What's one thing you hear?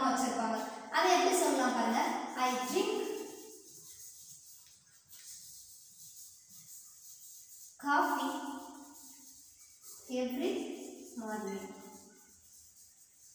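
A young woman speaks clearly in a slow, teaching manner.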